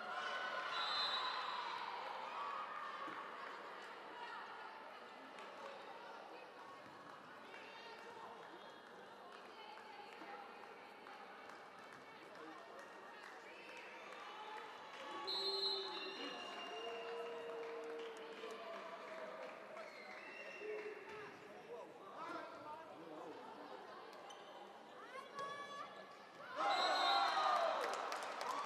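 A volleyball thuds against hands and the floor.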